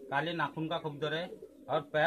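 A pigeon flaps its wings in a man's hands.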